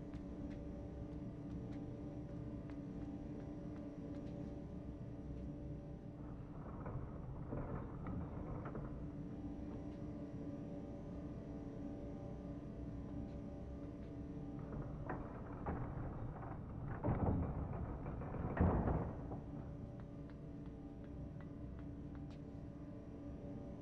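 Small footsteps tap on a metal walkway.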